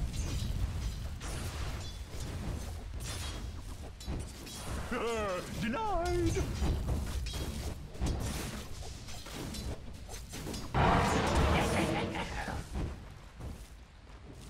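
Fighting sounds from a video game clash and crackle with bursts of spell effects.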